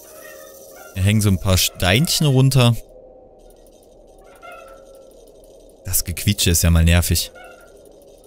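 A young man talks with animation, close into a microphone.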